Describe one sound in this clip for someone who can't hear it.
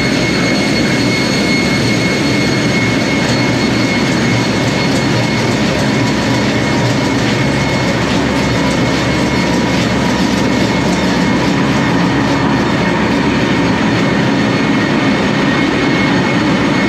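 Heavy engines roar loudly and steadily in a large metal room.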